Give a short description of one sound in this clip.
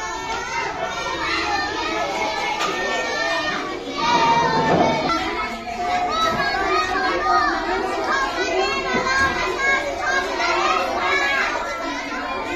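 Many children chatter and call out loudly together.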